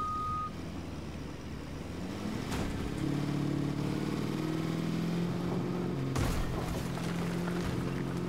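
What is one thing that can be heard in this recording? A truck engine revs and rises in pitch as it speeds up.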